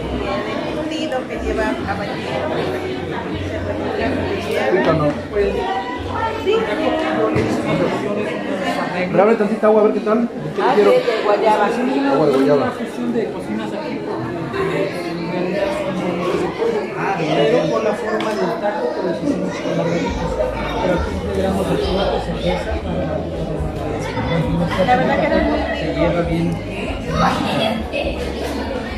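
Women talk nearby among a chattering crowd.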